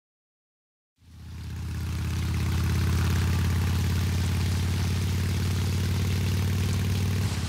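Heavy rain hisses down.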